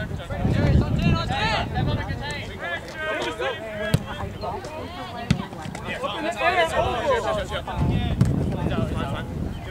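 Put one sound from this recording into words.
A soccer ball is kicked on grass.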